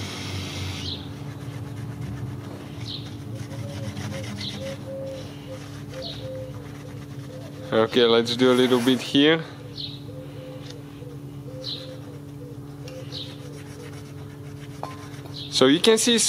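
A scouring pad scrubs lightly against metal.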